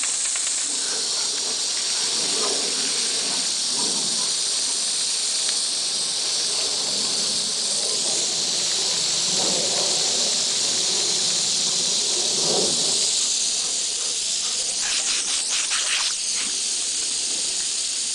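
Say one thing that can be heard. Water sprays steadily from a garden hose with a loud hiss.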